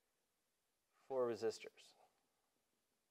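A man speaks briefly and calmly, close to a microphone.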